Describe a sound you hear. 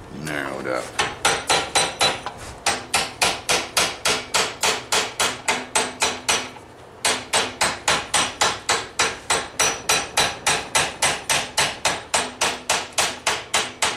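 A hammer rings in quick, steady blows on metal on an anvil.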